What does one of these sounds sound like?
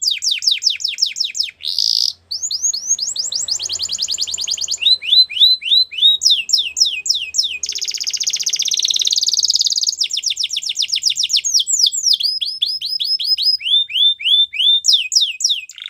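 A canary sings loudly and close by, with rapid trills and chirps.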